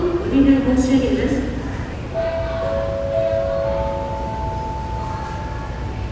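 A low murmur of a large echoing hall goes on.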